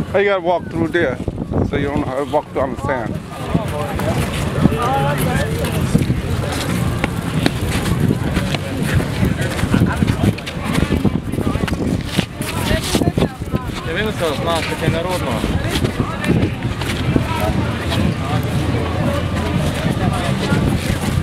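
A crowd of people talks and chatters nearby outdoors.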